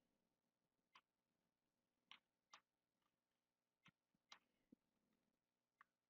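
Keys click softly on a keyboard.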